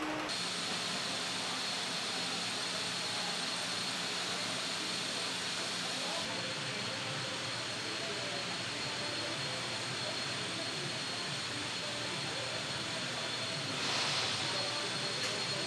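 A steady mechanical hum fills a large echoing hall.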